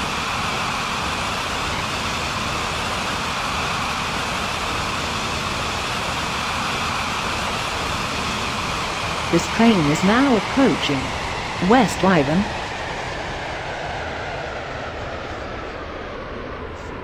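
A train rumbles steadily along the track, easing off towards the end.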